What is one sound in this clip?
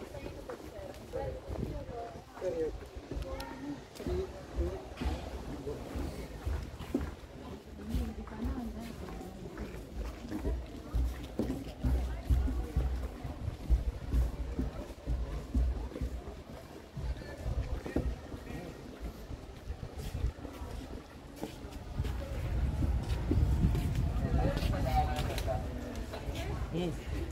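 Footsteps thud on a wooden boardwalk.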